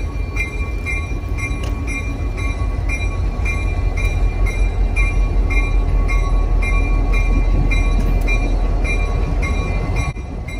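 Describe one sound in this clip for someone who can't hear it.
A diesel locomotive rumbles as it slowly approaches.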